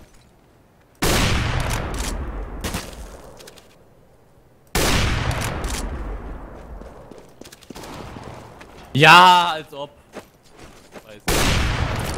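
A sniper rifle fires loud shots that echo and slowly fade.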